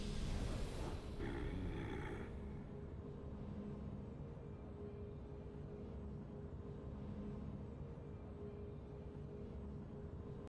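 A soft victory tune with a low hum plays.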